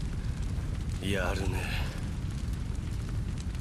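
A young man speaks weakly and hoarsely, close by.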